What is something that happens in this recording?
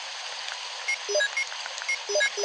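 Short electronic beeps sound in quick succession.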